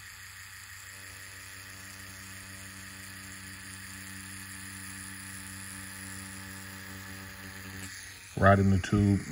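An engraving tool whirs steadily against the peel of an orange.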